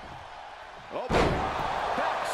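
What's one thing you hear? A body slams down hard onto a wrestling ring mat with a heavy thud.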